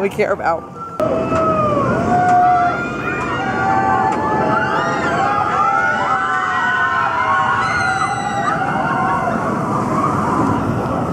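A roller coaster roars past overhead.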